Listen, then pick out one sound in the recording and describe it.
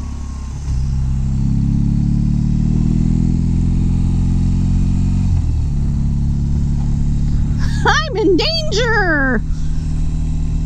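A motorcycle engine hums steadily as it rides, its pitch rising and dipping with gear changes.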